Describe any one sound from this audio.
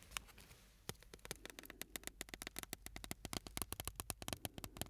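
Fingers tap quickly and softly close to a microphone.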